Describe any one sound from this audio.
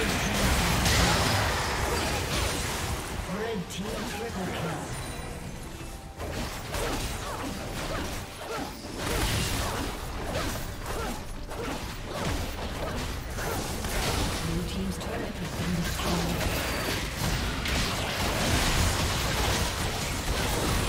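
Magic spells and weapon clashes burst in a busy video game battle.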